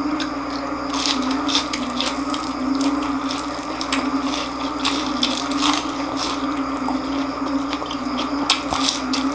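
A man bites into crispy fried food with loud crunches.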